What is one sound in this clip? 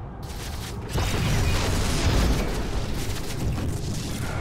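Gunfire and blasts rattle in a noisy battle.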